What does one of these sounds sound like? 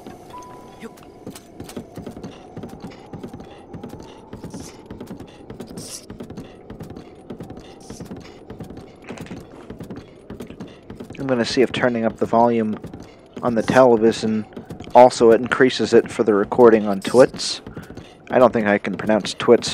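A horse's hooves clop steadily on a wooden bridge.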